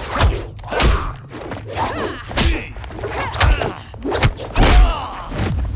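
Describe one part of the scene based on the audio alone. Punches and kicks land with heavy thuds and whooshes.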